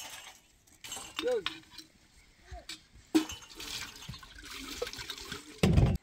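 Water pours from a jug into a metal tray.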